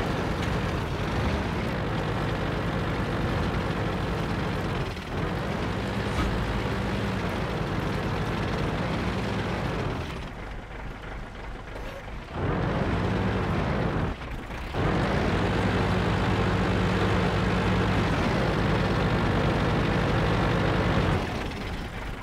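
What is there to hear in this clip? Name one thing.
A tank engine rumbles and revs.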